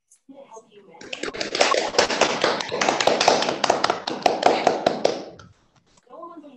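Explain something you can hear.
A group of people clap their hands over an online call.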